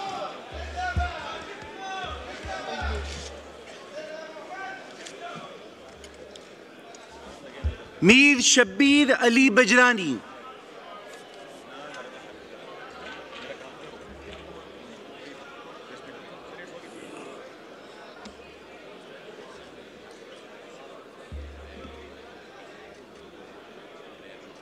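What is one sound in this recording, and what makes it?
Many people murmur and talk quietly in a large echoing hall.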